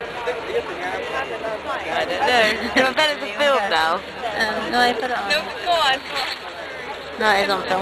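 Young women talk and laugh close by.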